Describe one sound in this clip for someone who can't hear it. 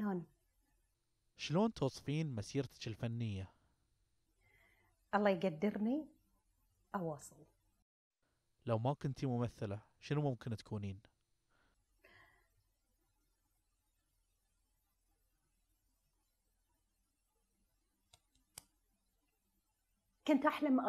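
A woman speaks calmly and warmly close to a microphone, with pauses.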